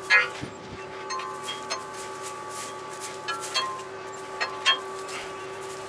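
Metal parts clank and rattle sharply now and then.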